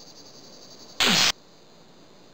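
A punch lands with a sharp thud.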